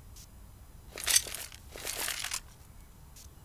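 A gun is handled with short metallic rattles and clicks.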